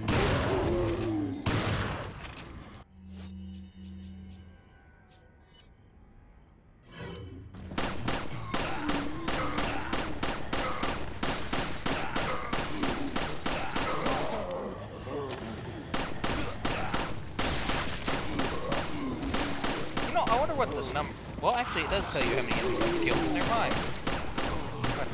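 A pistol fires shot after shot in rapid bursts.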